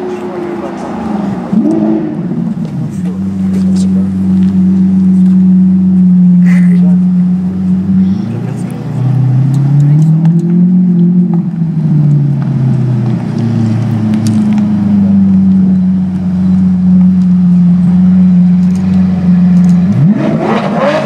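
A sports car engine idles loudly with a deep rumble.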